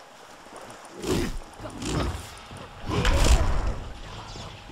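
A magic blast bursts with a crackling whoosh.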